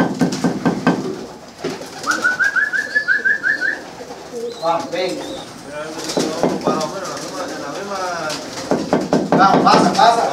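Pigeons coo and murmur close by.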